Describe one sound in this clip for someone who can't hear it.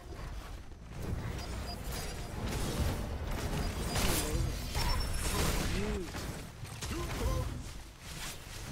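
Magic blasts crackle and rumble during a fight.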